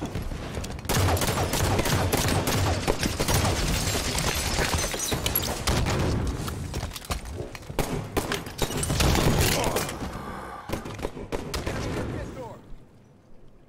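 Energy blasts and explosions boom.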